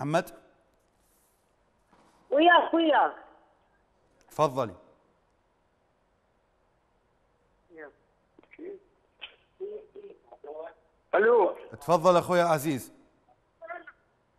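A man speaks calmly into a microphone in short bursts with pauses.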